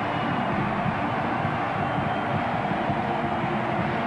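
Crowd members clap their hands.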